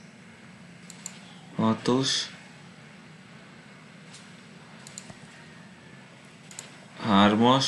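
Soft clicks sound as game tiles are picked.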